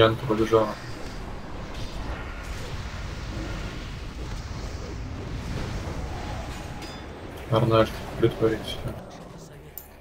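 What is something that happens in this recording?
Battle sounds of a video game crash and rumble steadily.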